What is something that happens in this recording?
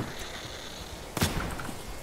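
Flames crackle on the ground.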